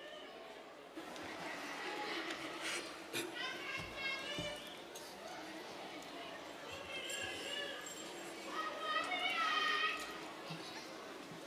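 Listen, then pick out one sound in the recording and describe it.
A person speaks at a lectern over a loudspeaker in a large hall.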